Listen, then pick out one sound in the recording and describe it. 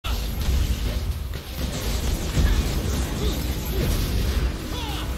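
Deep rumbling game impacts thud throughout.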